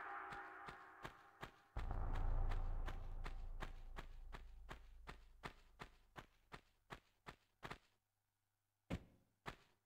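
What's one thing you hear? Footsteps pad quickly and evenly on stone.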